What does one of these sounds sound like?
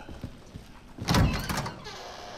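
A metal door swings open with a loud creak.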